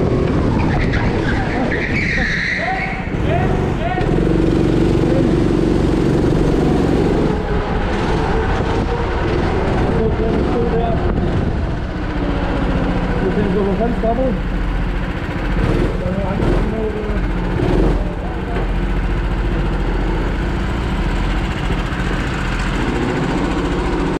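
A go-kart engine drones and revs as it is driven around an indoor track.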